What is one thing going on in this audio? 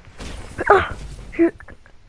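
A heavy blow lands with a fiery crackle.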